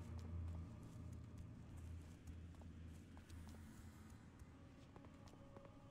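Footsteps tread steadily on a stone path.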